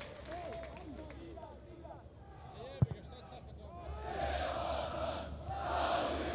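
Fans in a stadium crowd whistle shrilly.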